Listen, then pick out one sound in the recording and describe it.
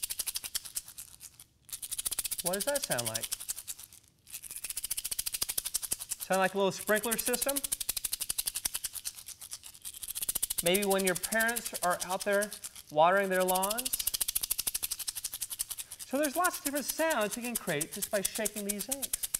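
An egg shaker rattles in quick, steady pulses.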